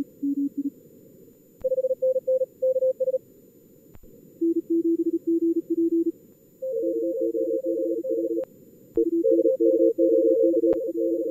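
Morse code tones beep in quick bursts at several different pitches.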